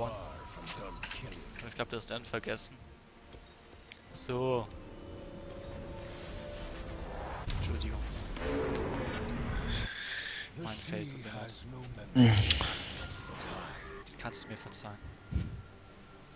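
Video game spell effects whoosh and chime.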